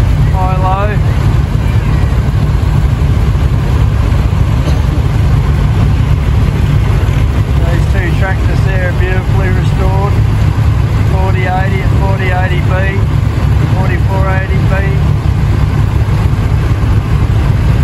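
Tractor engines rumble loudly and steadily close by.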